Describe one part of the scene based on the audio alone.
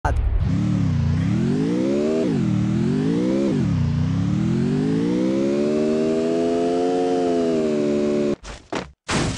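A car engine revs up and down, then holds a steady drone.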